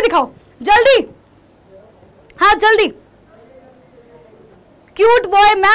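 A young woman speaks into a microphone in short, lively bursts with pauses between them.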